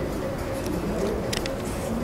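Paper pages rustle as a book page turns.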